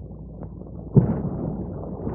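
A small firework pops.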